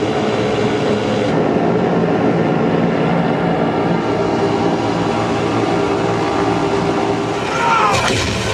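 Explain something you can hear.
Aircraft engines drone loudly through cinema speakers.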